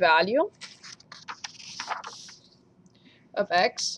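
Paper rustles as a sheet is turned.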